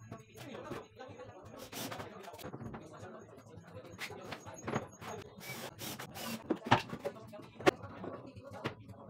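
Wooden panels knock and clatter as they are handled close by.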